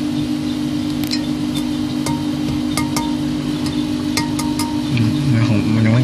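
Small seeds crackle and pop in a hot pan.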